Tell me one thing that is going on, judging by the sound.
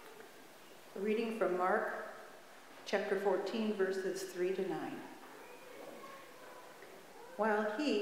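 An elderly woman reads aloud calmly into a microphone in a large echoing hall.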